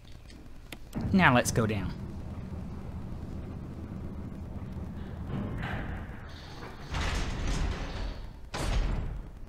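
A heavy metal lift rumbles and clanks.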